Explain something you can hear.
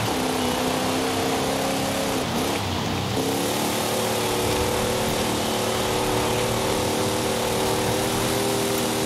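A car engine roars steadily at high revs, dropping briefly as it shifts gear.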